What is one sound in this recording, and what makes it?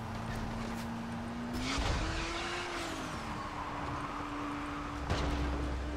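A vehicle engine hums steadily and revs up a little.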